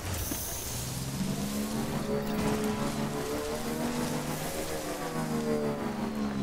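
A motorbike engine hums steadily as the bike rides over rough ground.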